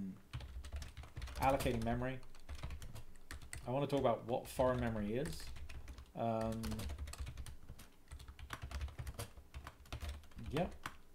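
Keys clatter on a keyboard.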